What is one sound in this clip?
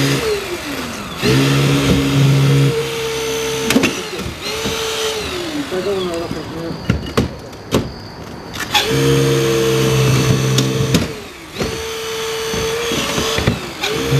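A hydraulic rescue tool whines as it runs in bursts.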